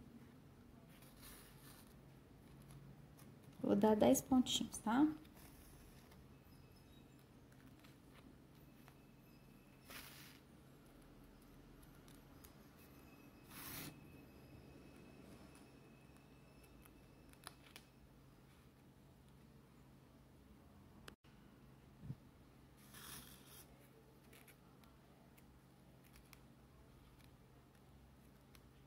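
Stiff card rustles and crinkles in hands.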